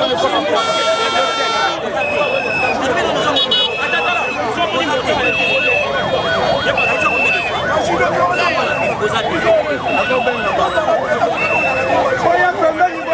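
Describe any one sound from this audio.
A crowd talks and cheers all around.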